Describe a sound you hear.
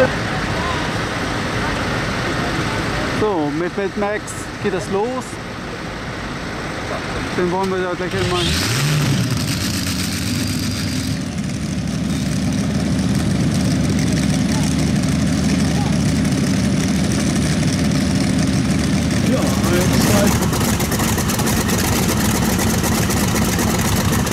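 Tractor engines rumble steadily nearby.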